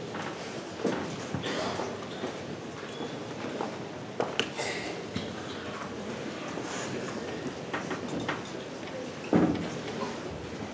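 A large crowd chatters in a big echoing hall.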